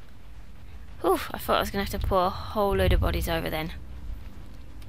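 A young woman speaks with animation into a headset microphone, close by.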